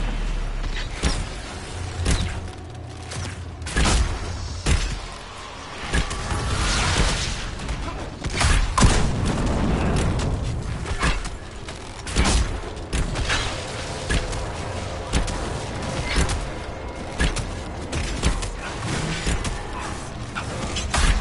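Magic spells crackle and zap repeatedly.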